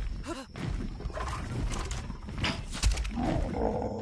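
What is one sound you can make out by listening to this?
Large wings beat with heavy, rhythmic whooshes.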